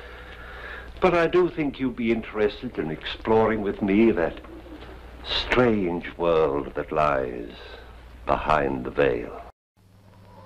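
An elderly man speaks calmly and deliberately, close by.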